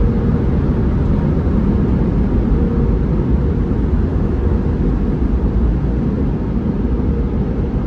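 Cloth brushes slap and swish against a car.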